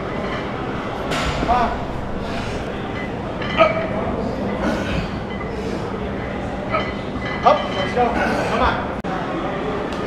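Men shout encouragement loudly in an echoing hall.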